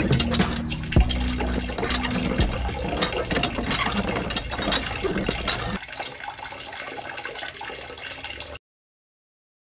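Water trickles and splashes from a small hand pump.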